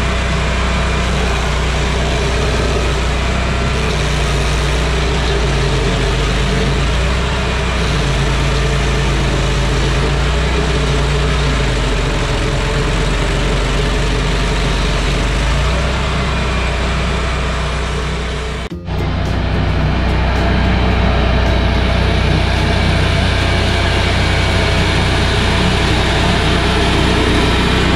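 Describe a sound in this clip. A stump grinder engine roars loudly and steadily.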